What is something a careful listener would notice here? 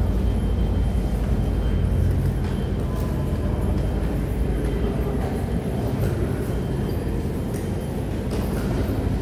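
Footsteps shuffle on a hard floor in an echoing tunnel.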